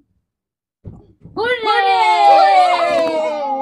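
Women and a young girl cheer together nearby.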